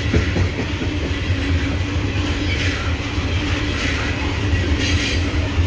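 Steel wheels clack and squeal over the rails.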